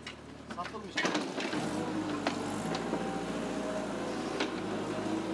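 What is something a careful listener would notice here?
Rubble crashes and clatters as a digger tears down a wall.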